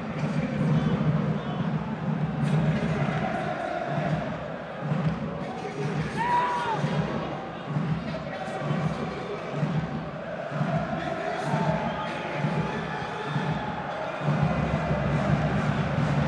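A large stadium crowd chants and drums steadily throughout.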